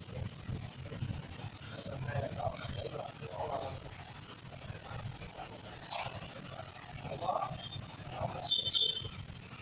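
Men talk nearby in a room.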